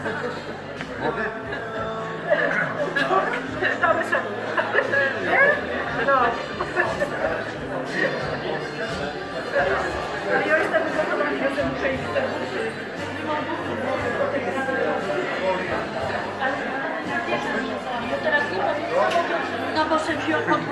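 A crowd of adults chatters all around in a busy hall.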